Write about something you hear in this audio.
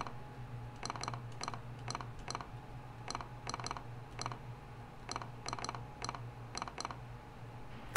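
Short electronic blips tick in quick pairs.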